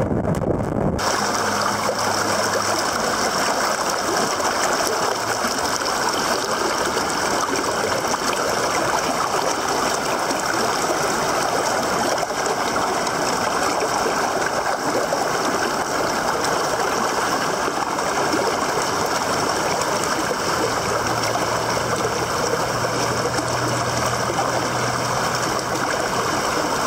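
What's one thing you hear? A fast river rushes over rocks.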